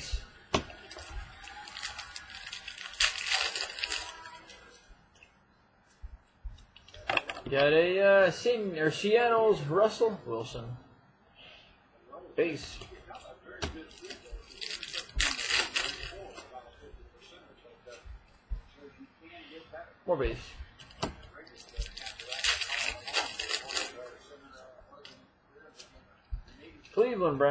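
Cards rustle and flick in someone's hands, on and off.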